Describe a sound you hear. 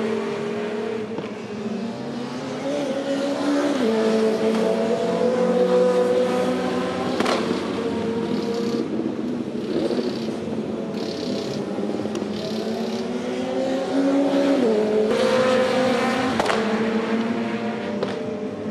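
A racing touring car engine screams at full throttle and shifts through its gears.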